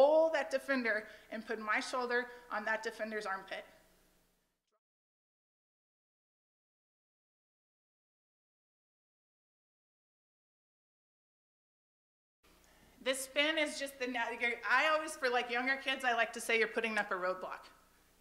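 A woman speaks with animation through a microphone.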